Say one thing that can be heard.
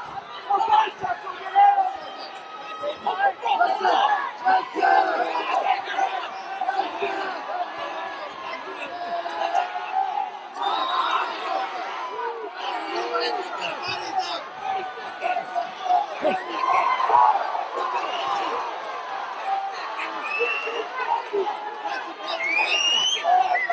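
A large crowd cheers and shouts throughout.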